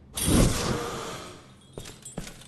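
A ghostly whoosh swells loudly and fades away.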